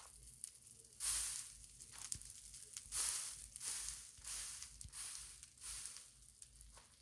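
Footsteps crunch on loose ground.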